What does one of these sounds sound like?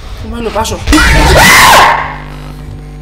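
A young man screams loudly into a microphone.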